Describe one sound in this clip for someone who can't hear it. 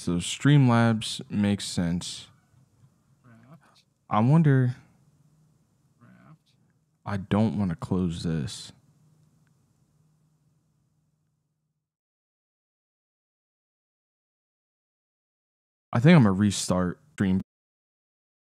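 A man talks casually into a close microphone, in short bursts with pauses.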